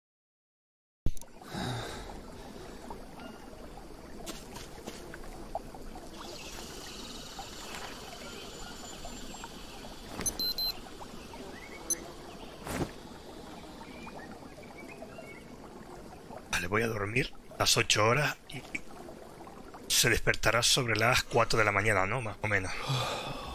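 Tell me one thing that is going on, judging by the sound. Night forest ambience hums steadily with chirping insects.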